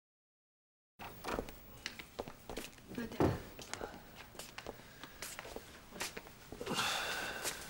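Footsteps cross a room.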